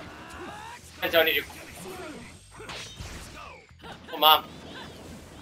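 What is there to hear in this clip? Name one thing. Loud blasts from a video game fight burst out.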